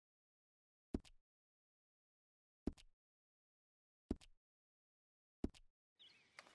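Short menu clicks sound.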